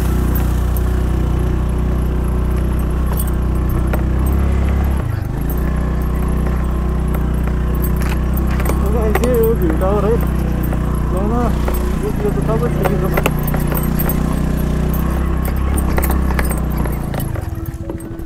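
A motorbike engine runs with a low steady hum and briefly drops in pitch as it changes gear.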